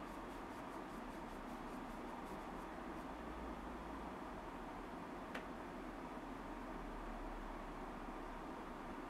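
A young woman talks softly and cheerfully close to a microphone.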